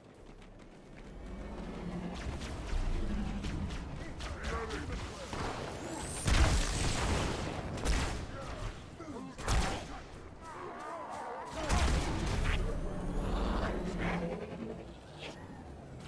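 Plasma guns fire in quick bursts.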